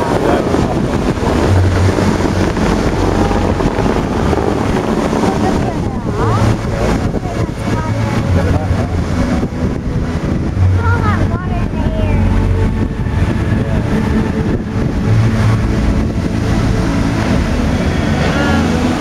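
Fountain jets of water rush and splash loudly.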